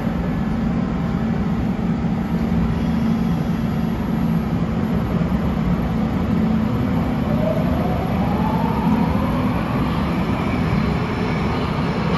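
An underground train hums and rumbles steadily in an echoing station.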